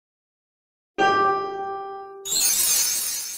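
A game plays a bright chime.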